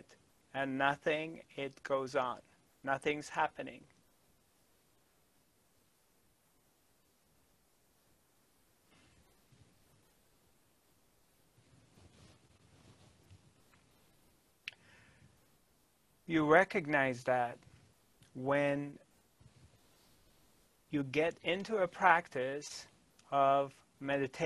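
A middle-aged man speaks calmly and closely into a microphone, with long pauses.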